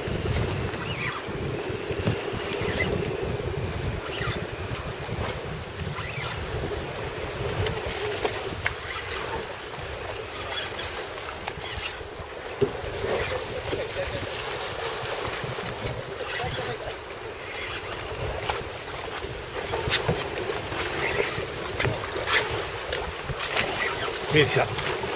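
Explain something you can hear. Waves slosh against the side of a boat.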